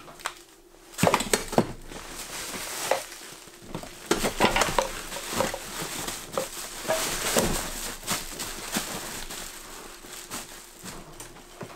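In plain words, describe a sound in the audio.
Fabric rustles as a bag is stuffed into a box.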